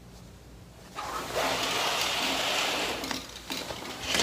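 A curtain rustles as it is pulled aside.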